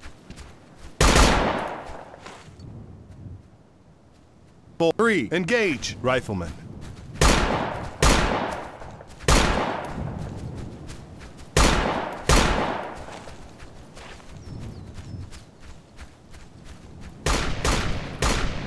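A rifle fires loud shots, one at a time, each echoing away.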